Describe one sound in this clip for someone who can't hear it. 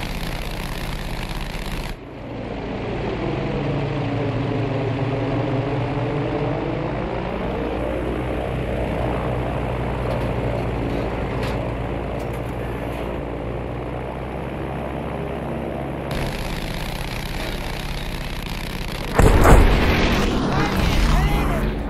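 Propeller engines of a plane drone steadily.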